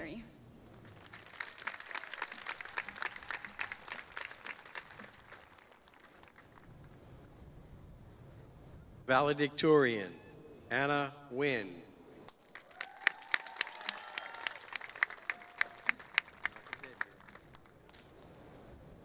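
A large crowd applauds outdoors.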